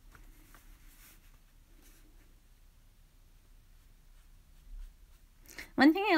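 A paintbrush brushes softly on paper.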